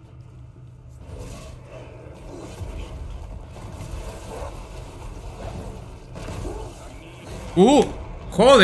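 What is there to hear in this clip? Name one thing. Magic blasts and clashing weapons crackle in a fast fight.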